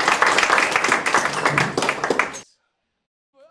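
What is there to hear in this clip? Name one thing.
A rock band plays loud electric guitars and bass.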